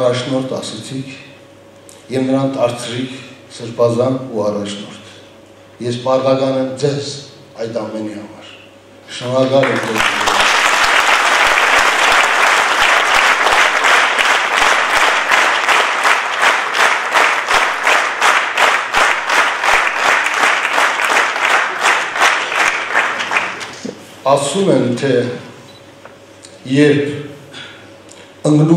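An older man speaks slowly and solemnly into a microphone in an echoing hall.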